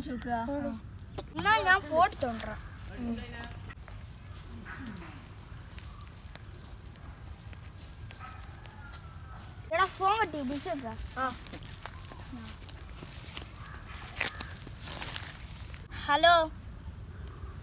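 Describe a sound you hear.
Children talk nearby with animation, outdoors.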